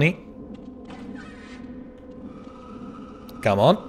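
A heavy metal door slides open.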